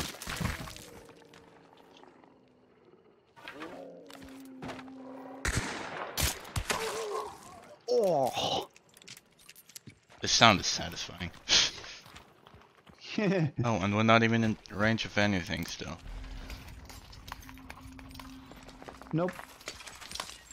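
Footsteps squelch through wet mud.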